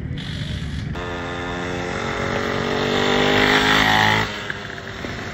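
A small dirt bike engine revs and pulls away.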